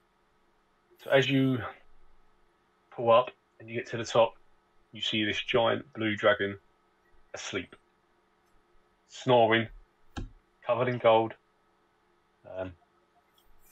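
A man speaks with animation over an online call.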